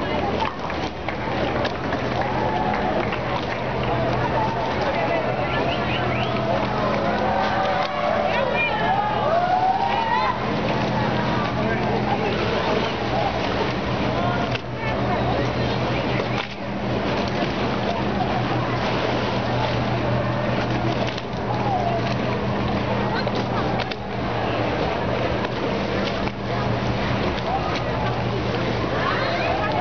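Water slaps and laps against a rocking boat's hull.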